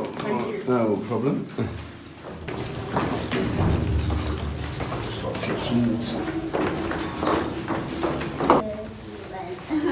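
Footsteps clatter down a stairwell.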